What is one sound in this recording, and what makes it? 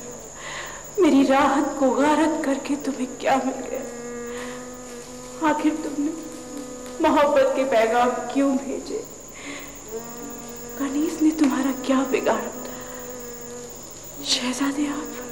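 A young woman sings a slow, melodic song close by.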